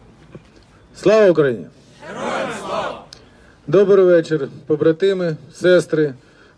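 A man sings loudly close by, in short bursts.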